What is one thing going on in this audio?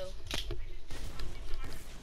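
A gun fires in quick shots in a video game.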